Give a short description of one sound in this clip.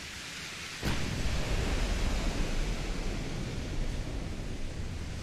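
Sea waves wash steadily against a ship's hull.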